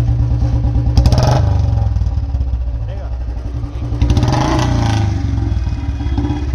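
A motorcycle engine revs up sharply a few times.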